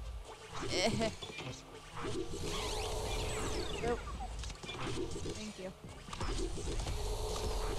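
Video game music plays with bright chimes and bleeps.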